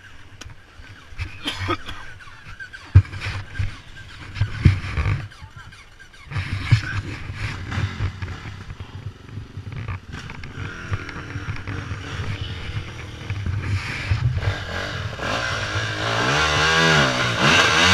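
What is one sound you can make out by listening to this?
A dirt bike engine revs and sputters close by.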